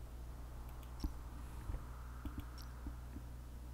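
A short electronic chime sounds as a button is clicked.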